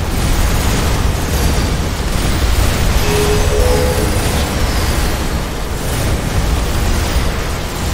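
Explosions rumble and boom.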